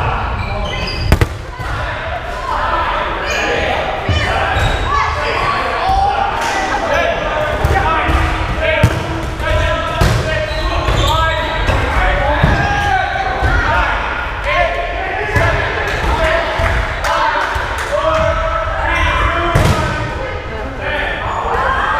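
Rubber balls bounce and thud on a wooden floor.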